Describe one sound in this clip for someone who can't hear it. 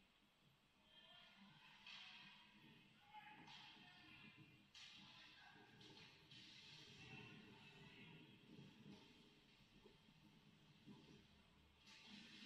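Skate blades scrape and hiss across the ice in a large echoing hall.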